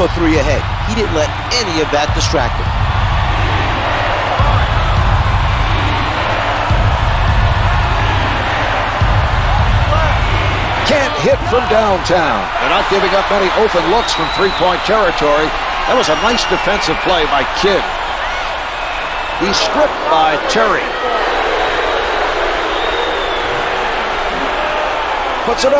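A large crowd roars steadily in an echoing arena.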